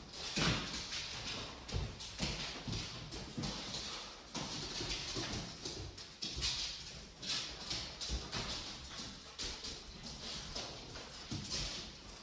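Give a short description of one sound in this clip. Dog paws patter on a hard floor.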